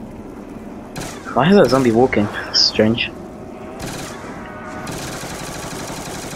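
Gunfire rings out in short bursts.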